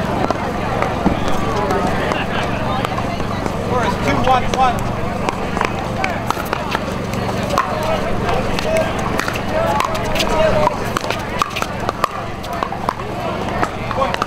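Paddles pop sharply against a plastic ball in quick rallies.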